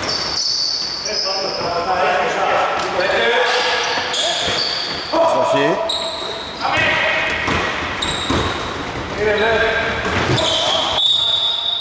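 Men shout to each other across the court.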